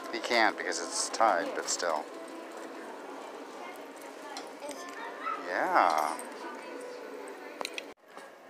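Keys jingle and clink as a small child handles them.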